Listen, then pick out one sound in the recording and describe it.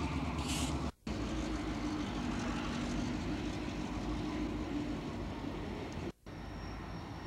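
Freight cars rattle along the rails.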